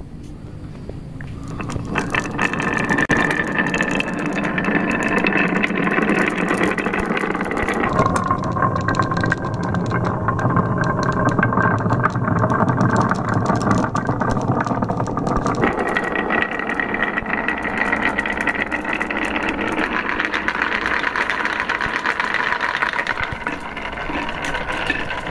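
Marbles roll and rattle steadily along a wooden track.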